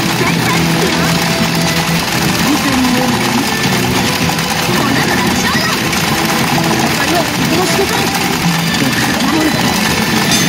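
Metal balls clatter steadily through a pachinko machine.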